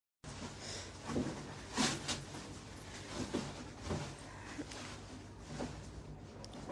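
Fabric rustles as a dress is handled.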